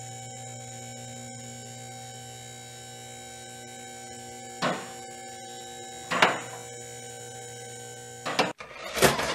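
A small toy turntable hums steadily as it turns.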